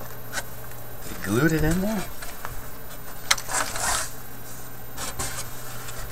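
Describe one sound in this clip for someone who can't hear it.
A wooden tray knocks and scrapes as it is lifted and tilted.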